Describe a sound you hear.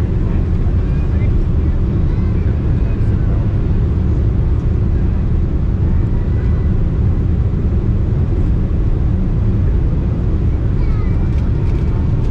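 Jet engines roar with a steady, deep rumble inside an airliner cabin.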